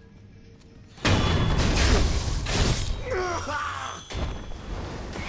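Swords clash and ring in a quick fight.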